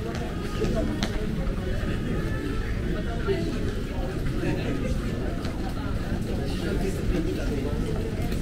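A murmur of distant voices carries through a large echoing hall.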